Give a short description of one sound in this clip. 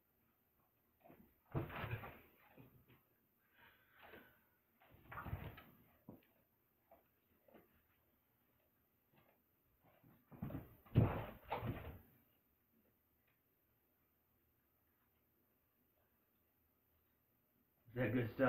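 Dogs' paws patter and scamper across a carpeted floor.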